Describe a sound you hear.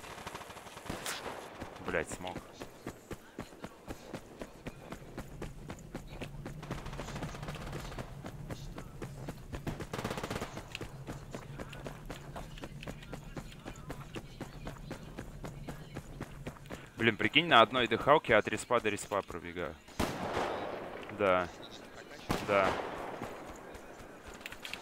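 Footsteps crunch over rough ground at a steady pace.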